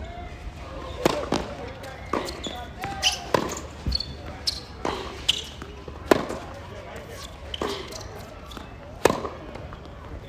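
Tennis balls are struck sharply by rackets, back and forth in a rally, outdoors.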